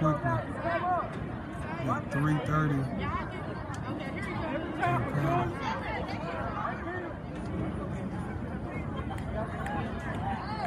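Young players cheer and call out on the sideline.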